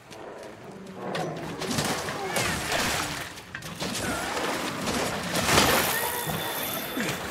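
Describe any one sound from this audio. A spear strikes a creature with sharp hits and bursts.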